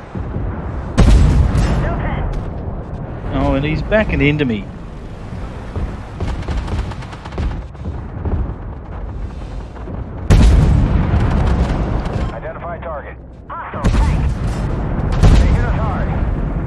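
Loud explosions burst with booming blasts.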